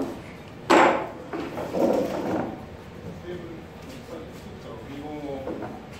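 A folding chair knocks and clatters as it is carried.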